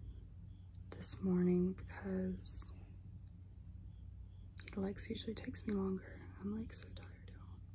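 A young woman speaks softly and hesitantly close by.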